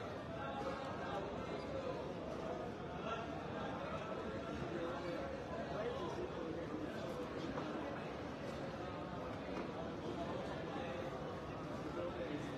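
A man murmurs a prayer quietly close by.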